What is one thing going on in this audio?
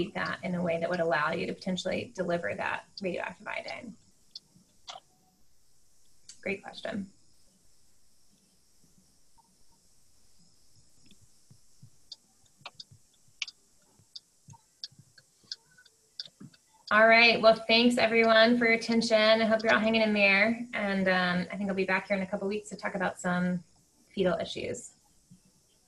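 A woman speaks calmly through a microphone on an online call, with pauses.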